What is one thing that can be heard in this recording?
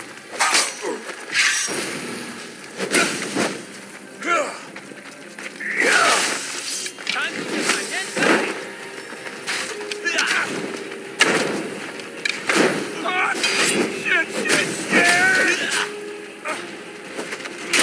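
Men grunt and shout in combat.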